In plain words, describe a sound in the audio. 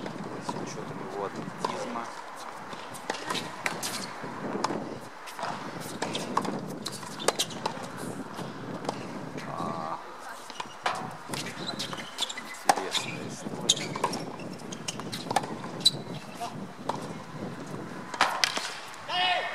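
A tennis racket strikes balls again and again outdoors.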